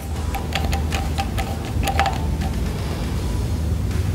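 A screwdriver clicks and ticks against metal parts.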